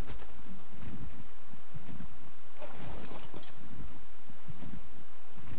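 A large winged creature flaps its wings in rhythmic whooshes.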